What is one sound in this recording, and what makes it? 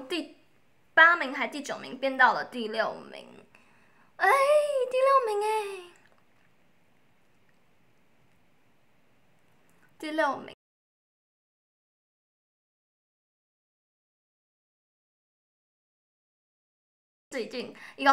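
A young woman speaks close to a microphone in a playful voice.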